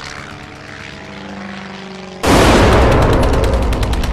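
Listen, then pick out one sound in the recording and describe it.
Propeller plane engines drone loudly overhead.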